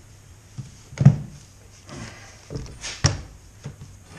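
A tool knocks sharply against metal a few times.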